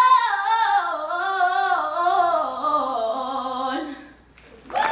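A young girl sings into a microphone, amplified through loudspeakers in an echoing hall.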